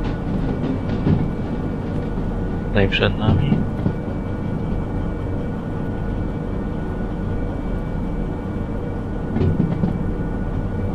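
A train engine rumbles low and steadily.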